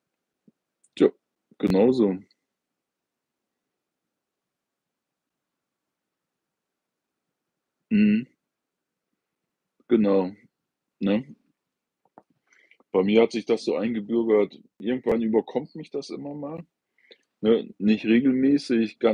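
An older man speaks calmly and close by, with long pauses.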